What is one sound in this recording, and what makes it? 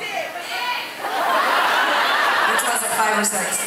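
A crowd cheers and screams loudly in a large hall.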